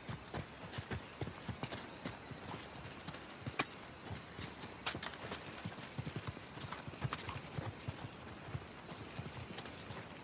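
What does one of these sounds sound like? Footsteps run and crunch lightly over grass.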